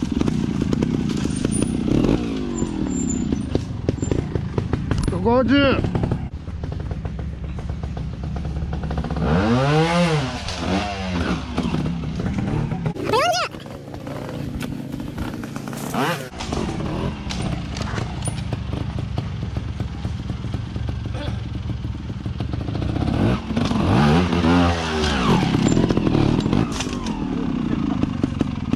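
A trials motorcycle engine revs in sharp bursts, close by.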